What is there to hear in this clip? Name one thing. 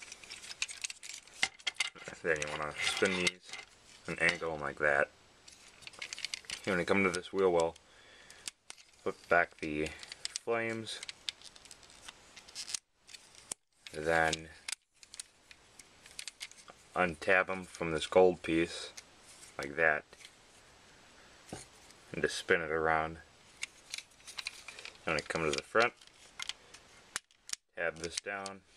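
Small plastic parts click and snap as a toy is folded and unfolded by hand.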